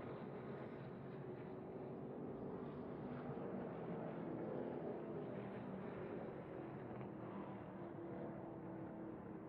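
A race truck engine roars loudly up close as it speeds along.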